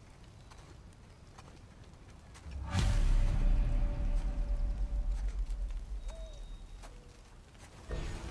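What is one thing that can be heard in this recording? Heavy footsteps crunch on snow and dirt.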